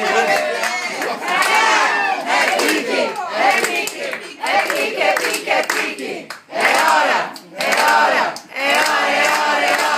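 A group of adults cheers and laughs.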